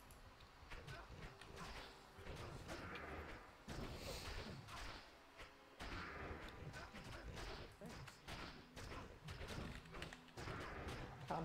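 Spells crackle and burst in quick succession.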